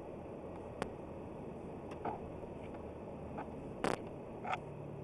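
Tyres rumble along a road.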